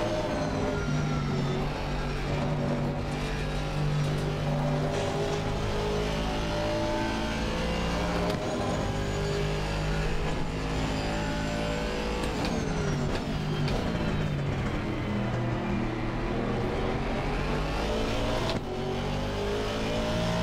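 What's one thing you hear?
A racing car engine roars and shifts through gears.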